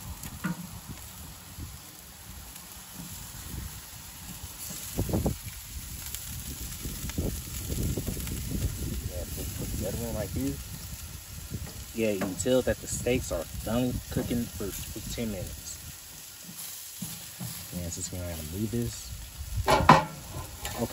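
Metal tongs clack against a grill grate.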